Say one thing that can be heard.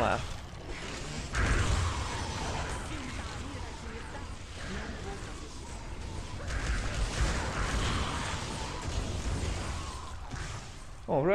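Game combat effects crash and clash with a deep rumble.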